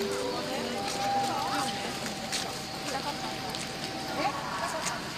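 Footsteps tap on pavement as people walk past.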